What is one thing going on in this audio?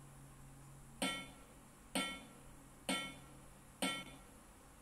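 A phone game plays short ringing metallic clanks at an even pace.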